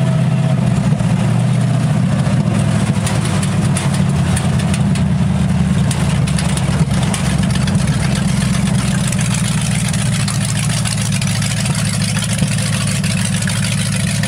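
An old car engine rumbles loudly and steadily from inside the cabin.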